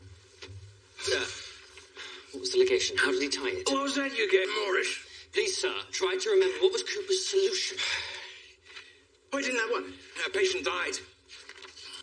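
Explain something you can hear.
A young man speaks urgently and quietly, close by.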